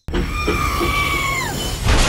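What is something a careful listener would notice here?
A toy train rattles along a plastic track.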